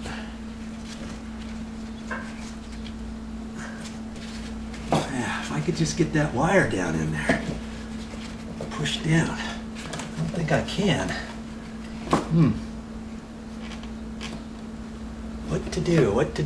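A metal tool scrapes and taps against a metal box in the wall.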